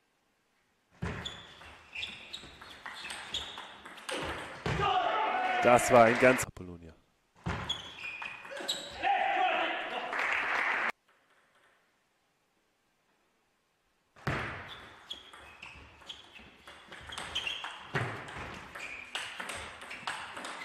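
A table tennis ball clicks back and forth off paddles and a table in quick rallies.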